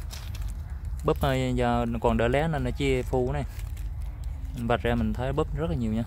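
Leaves rustle softly as a hand handles a twig.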